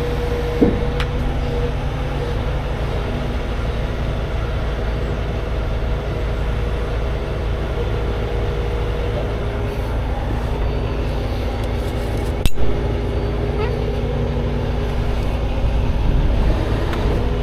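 A large truck engine idles with a steady low rumble.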